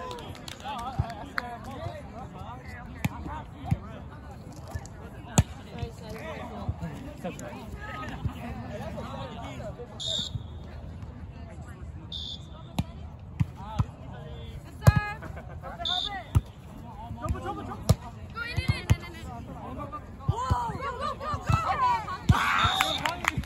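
A volleyball is struck by hands with sharp slaps.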